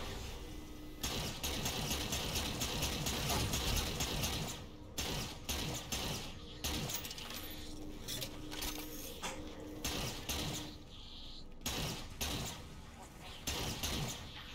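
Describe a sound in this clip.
A futuristic energy gun fires in rapid bursts.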